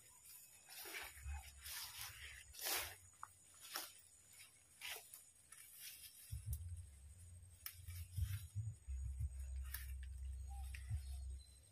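Leaves and fern fronds rustle as a man pushes through thick undergrowth.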